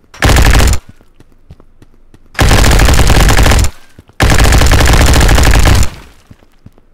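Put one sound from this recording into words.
A rotary machine gun fires in loud, roaring bursts.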